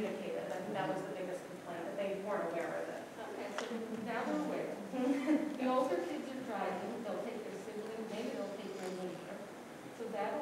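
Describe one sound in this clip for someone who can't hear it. An adult speaks calmly, heard through a microphone in a large echoing room.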